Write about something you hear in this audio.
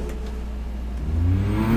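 A race car engine starts up and revs.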